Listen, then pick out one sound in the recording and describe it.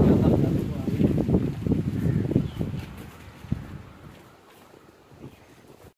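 Footsteps walk along a paved path.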